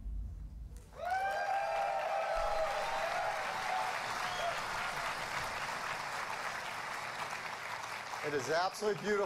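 A large crowd applauds and cheers in a big hall.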